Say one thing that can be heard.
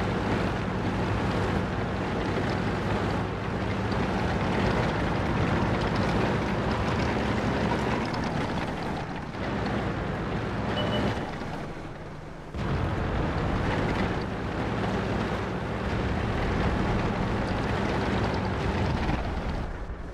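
A tank engine rumbles steadily as the tank drives over rough ground.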